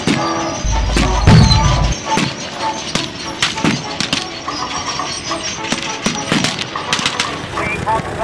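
Rifles fire in sharp, rapid cracks.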